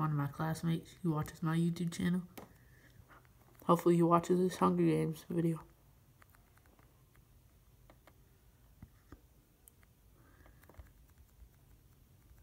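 Fingers tap lightly on a touchscreen.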